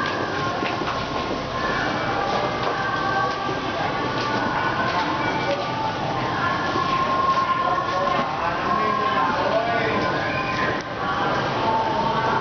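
A crowd of men and women chatter and talk over one another nearby.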